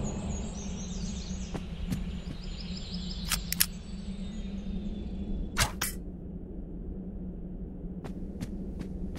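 Swords clash and clang in a distant battle.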